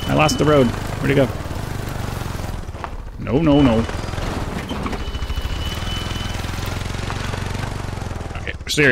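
A quad bike engine hums steadily while driving.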